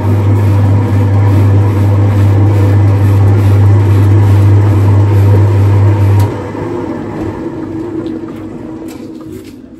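A machine's wheel spins with a loud, steady low hum that drops off and winds down.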